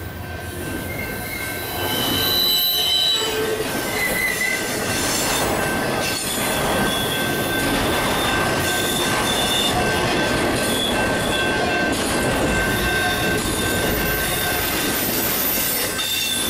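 Steel wheels squeal and screech against the rails.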